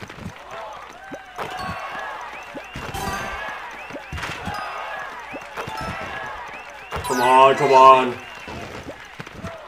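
Basketballs bounce with dull thumps on a hard court.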